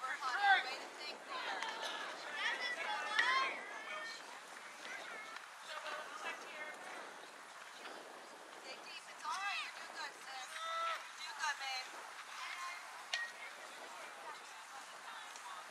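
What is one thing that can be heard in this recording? Young girls shout and cheer outdoors at a distance.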